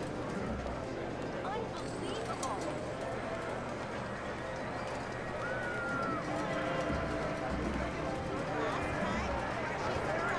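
Slot machines chime and jingle in a busy hall.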